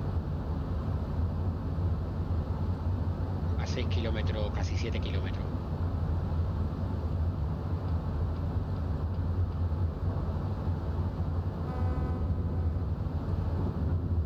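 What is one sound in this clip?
Rain patters on a windscreen.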